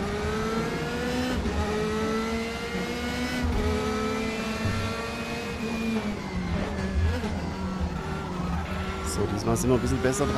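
A racing car engine roars, its pitch climbing and dropping with each gear change.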